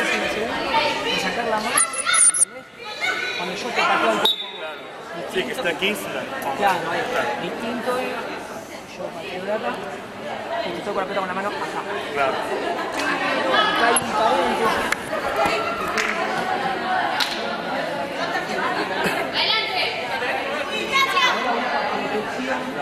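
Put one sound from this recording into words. Voices of young women and men chatter and call out, echoing in a large hall.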